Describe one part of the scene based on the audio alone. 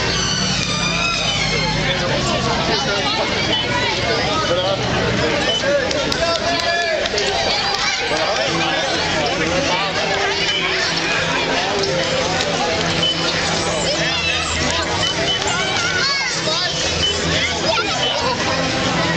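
Spectators cheer and shout outdoors.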